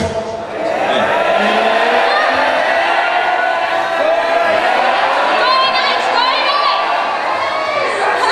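A man sings into a microphone over loudspeakers in a large echoing hall.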